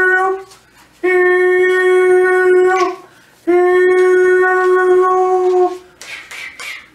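A man sings long, steady held notes close by.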